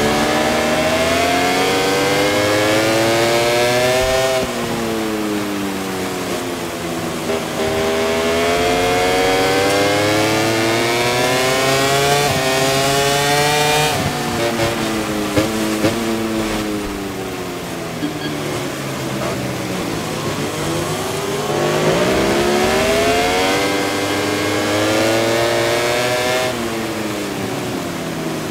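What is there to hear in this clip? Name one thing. A motorcycle engine revs hard, rising and falling in pitch as gears shift.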